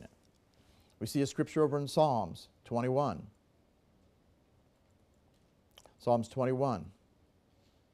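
A middle-aged man speaks slowly and deliberately into a microphone, with pauses.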